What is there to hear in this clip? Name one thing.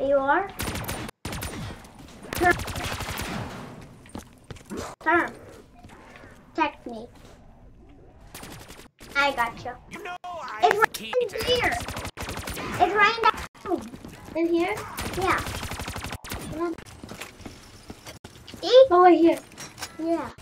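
A young boy talks with animation, close by.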